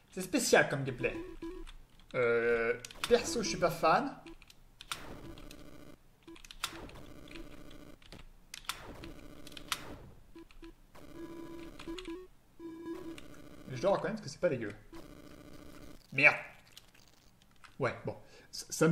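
Short electronic game sounds bleep and chirp.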